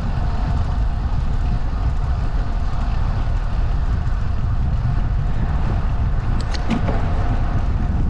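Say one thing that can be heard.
Tyres hum along smooth asphalt.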